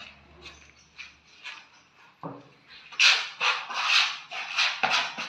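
A trowel scrapes rhythmically across a plastered wall.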